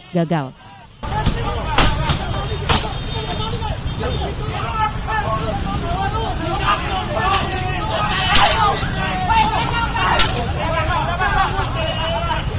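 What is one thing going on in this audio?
A crowd of men shouts loudly outdoors.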